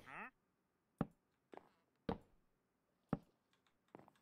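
Footsteps knock on wooden planks at a steady pace.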